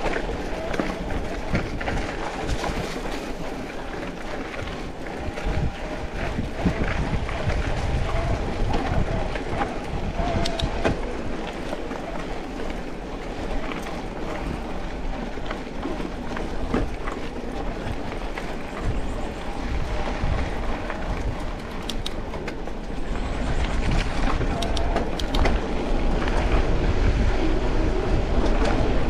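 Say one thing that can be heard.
Bicycle tyres crunch and rattle over a rough dirt track.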